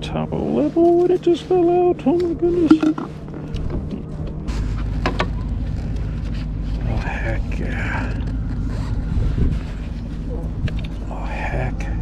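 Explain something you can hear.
Water laps against a kayak hull.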